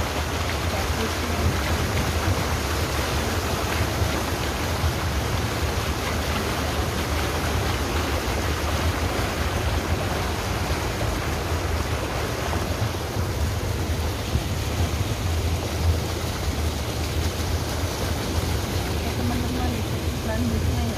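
Water rushes and splashes along a boat's hull.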